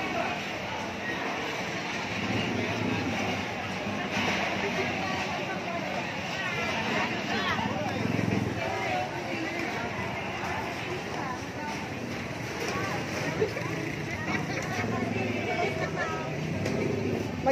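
A busy crowd of men and women chatters all around.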